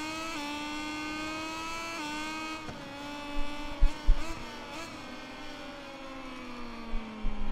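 A motorcycle engine whines loudly, its pitch shifting through gear changes.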